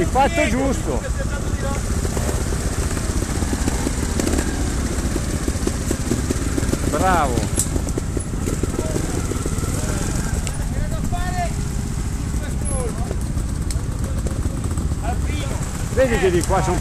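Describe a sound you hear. A motorbike engine putters and idles close by.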